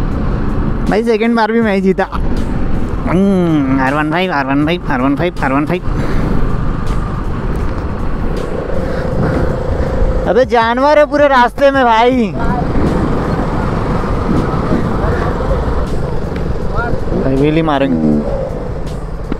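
A motorcycle engine revs sharply up and down several times.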